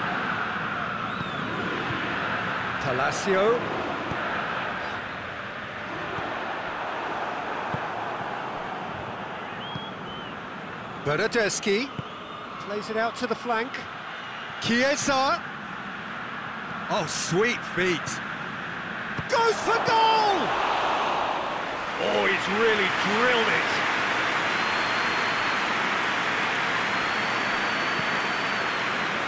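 A large stadium crowd roars and murmurs steadily.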